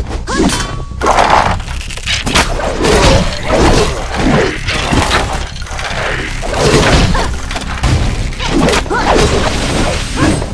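Blades swoosh and clash in quick, repeated strikes.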